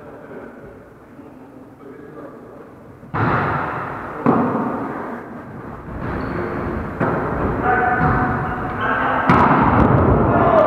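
Sneakers squeak and thud on a wooden floor in a large echoing hall.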